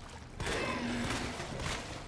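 A gun fires a shot in an echoing tunnel.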